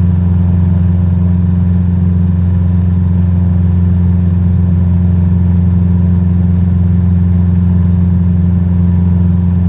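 A small propeller plane's engine drones steadily and loudly.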